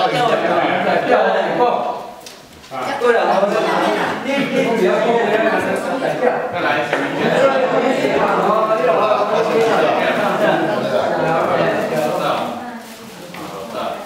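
Several men and women talk and chatter at once in an echoing room.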